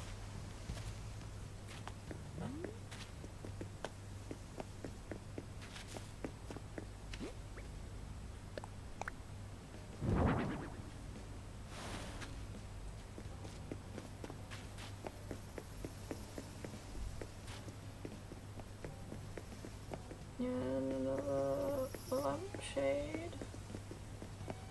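Soft footsteps patter quickly on the ground.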